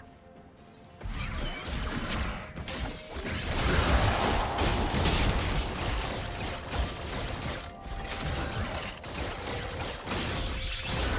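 Video game spell effects whoosh, crackle and burst in a busy fight.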